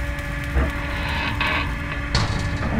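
A heavy metal shutter scrapes as it is pushed.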